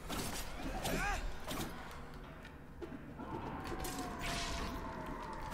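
Blades swish and clash in quick, sharp strikes.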